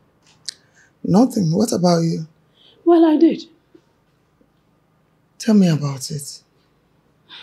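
A woman talks emotionally close by.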